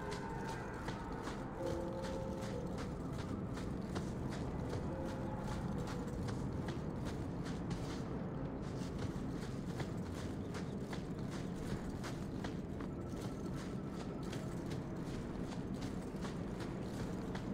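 Footsteps run quickly and steadily over sand and gravel.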